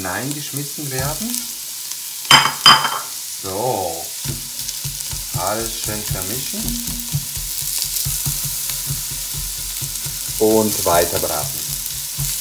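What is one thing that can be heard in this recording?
Vegetables sizzle softly in a hot pot.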